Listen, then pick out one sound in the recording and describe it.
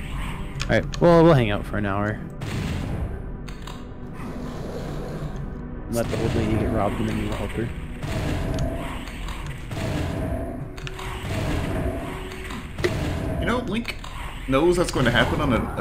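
Game monsters growl and roar.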